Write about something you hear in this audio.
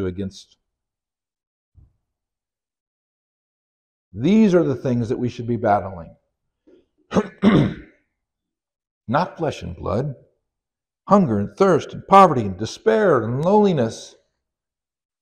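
A middle-aged man speaks calmly through a microphone in a large room.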